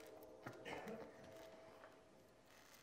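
A saxophone plays soft, breathy notes.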